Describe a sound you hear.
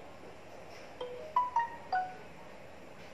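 A phone plays a few short electronic chimes.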